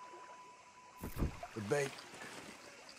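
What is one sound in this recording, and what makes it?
A fishing rod whips as a line is cast.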